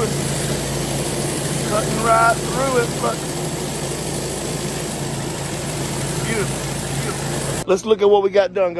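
A pressure washer surface cleaner hisses and whirs steadily over wet concrete.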